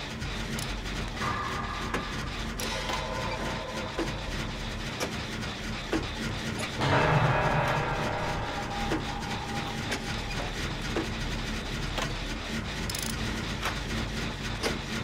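Metal parts clank and rattle as a machine is worked on by hand.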